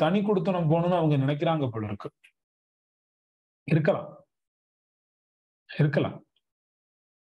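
A man speaks with animation over an online call, in short bursts with pauses.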